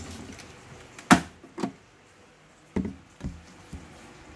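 A plastic lid clicks and clatters on a plastic cage.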